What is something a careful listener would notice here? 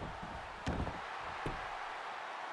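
Heavy thuds sound as bodies slam onto a wrestling ring mat.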